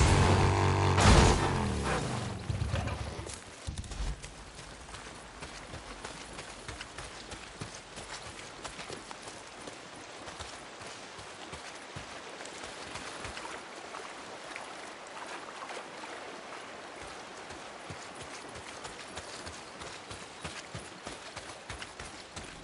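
Footsteps rustle through grass and brush.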